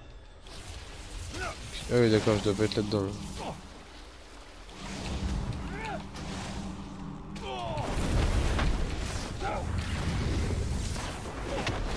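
Magic spells whoosh and chime.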